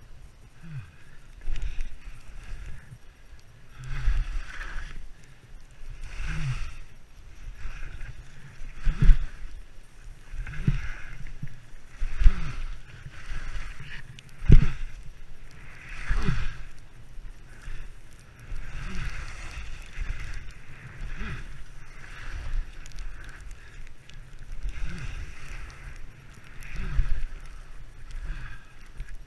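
Wind buffets a helmet-mounted microphone as a skier descends.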